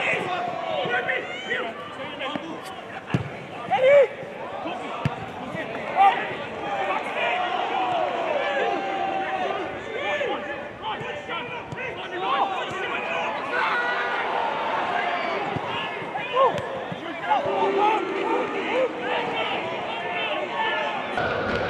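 Footballers shout to each other across an open pitch.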